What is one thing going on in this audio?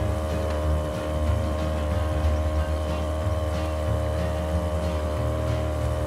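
Water rushes against a speeding boat's hull.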